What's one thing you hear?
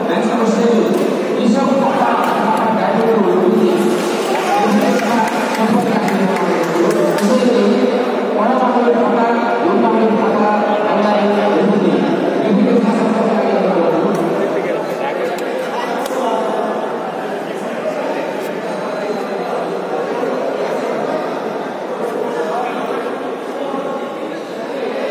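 A crowd of men and women chatter throughout a large echoing hall.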